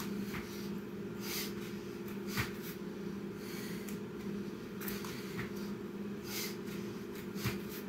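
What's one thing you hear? Hands and feet thump onto a floor mat.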